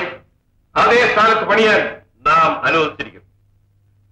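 A man speaks loudly and forcefully.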